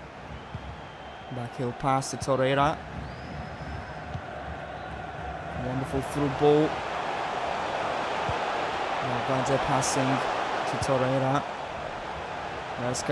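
A large stadium crowd roars steadily, swelling louder over time.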